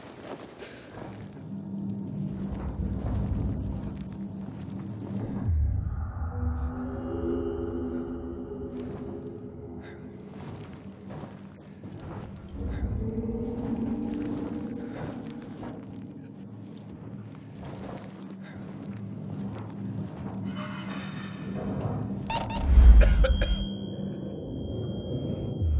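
Footsteps thump and clank on a hollow metal floor.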